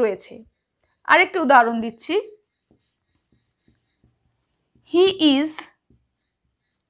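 A woman speaks calmly and clearly, close by, in short phrases.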